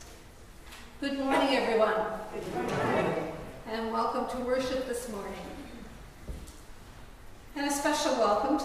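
A woman speaks slowly through a microphone and loudspeakers in a large echoing hall.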